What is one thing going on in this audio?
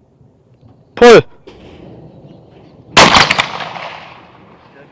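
A shotgun fires loudly twice, the blasts echoing across open ground.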